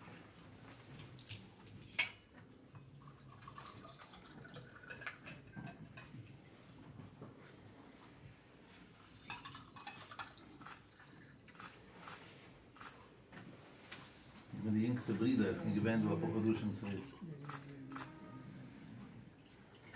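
Liquid pours into small cups.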